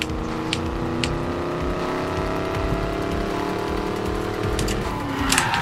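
A sports car engine roars at high speed, its pitch rising steadily.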